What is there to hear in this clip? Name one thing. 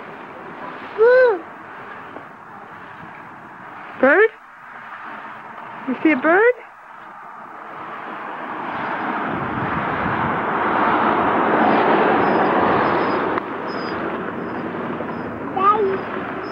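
A small child squeals in short, high bursts nearby.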